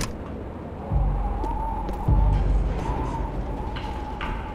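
Heavy footsteps clank on a metal ladder.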